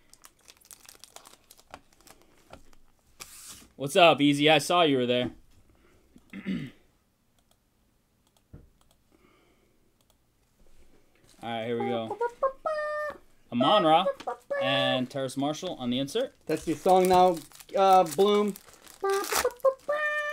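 Plastic card wrappers crinkle as hands tear them open.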